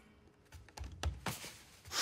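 Clothes rustle as they are rummaged through.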